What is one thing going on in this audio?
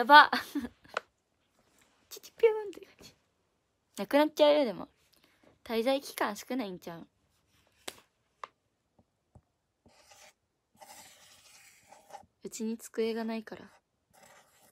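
A young woman talks close to a microphone, with animation and in short bursts.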